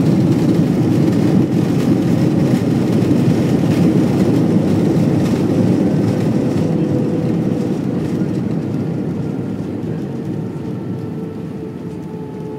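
Jet engines roar in a loud, deep rumble inside an airliner cabin, slowly fading.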